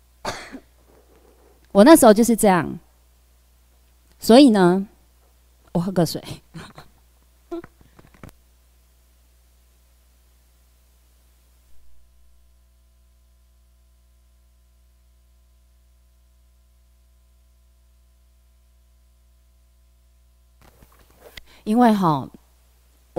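A young woman speaks through a microphone with animation, in short bursts with long pauses.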